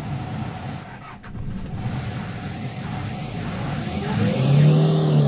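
A diesel light truck engine idles, heard from inside the cab.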